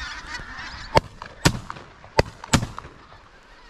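A shotgun fires several times.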